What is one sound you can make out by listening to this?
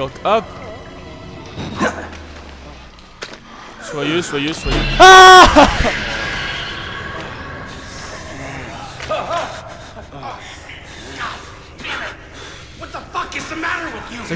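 A young man talks with animation, close to a headset microphone.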